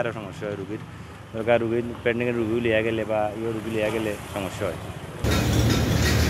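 A young man speaks into a microphone close by.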